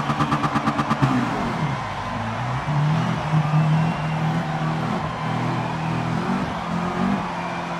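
A race car engine roars and revs up as the car accelerates through the gears.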